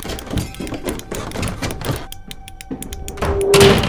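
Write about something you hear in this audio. Footsteps thud on wooden floorboards.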